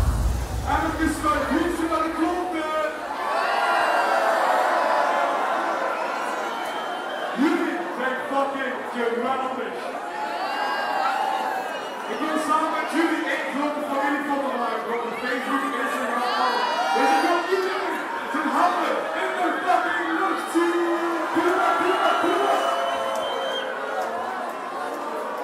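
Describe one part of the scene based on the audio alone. A young man sings energetically into a microphone, heard over loudspeakers.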